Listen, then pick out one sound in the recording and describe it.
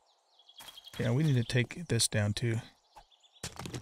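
A man speaks casually into a microphone.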